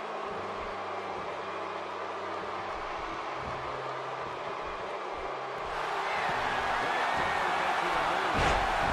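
A large crowd cheers steadily in an echoing arena, swelling louder.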